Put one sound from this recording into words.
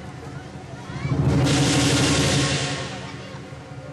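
A crowd cheers and claps loudly, then dies down.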